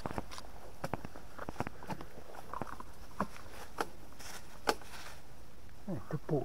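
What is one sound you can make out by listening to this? Dry twigs and leaves crackle close by.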